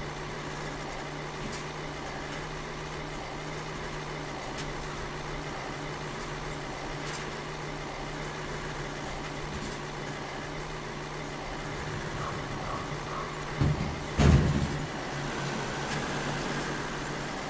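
A truck engine hums steadily as it drives.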